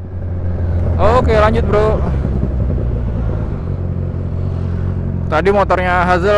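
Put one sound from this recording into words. A motorcycle engine revs up sharply in short bursts.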